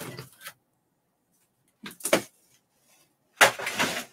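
A plastic marker clatters as it is set down on a board.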